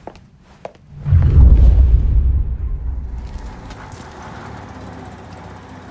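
A car engine rumbles low and slowly fades.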